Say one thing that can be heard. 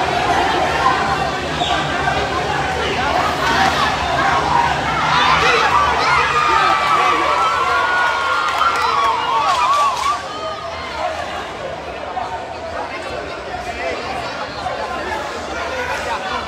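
A crowd of spectators shouts and cheers in an indoor hall.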